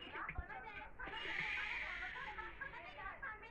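A blender whirs.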